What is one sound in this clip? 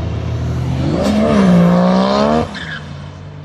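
A car engine revs hard, rising in pitch, then cuts off sharply.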